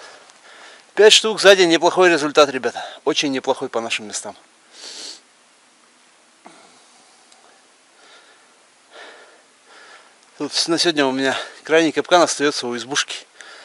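A man talks with animation close by, outdoors.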